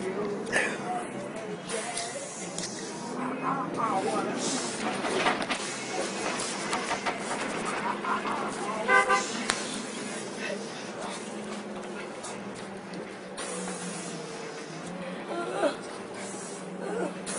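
A bus engine hums steadily while the bus drives.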